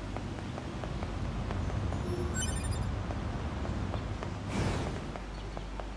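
Blades clash and swish in a fight.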